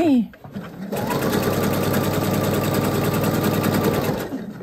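A sewing machine runs with a steady, fast whirring hum.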